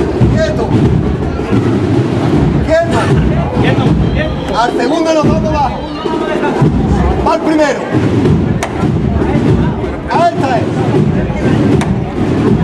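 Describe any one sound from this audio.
A crowd of people talks loudly nearby outdoors.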